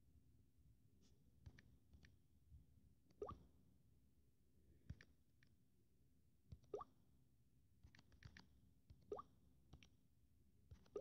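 Fingers tap lightly on a touchscreen keyboard.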